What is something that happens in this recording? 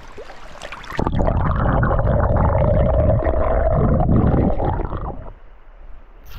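Water gurgles and rushes loudly around a submerged microphone.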